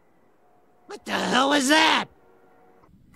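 A cartoon clown speaks in a gravelly voice.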